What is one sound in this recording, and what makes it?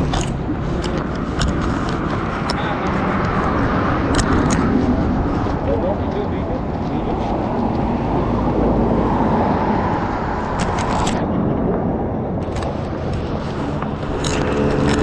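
Men talk nearby in the open air.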